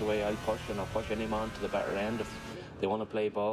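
A motorcycle engine roars at speed.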